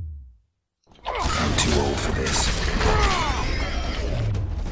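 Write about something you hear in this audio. A sword slashes and strikes in a fight.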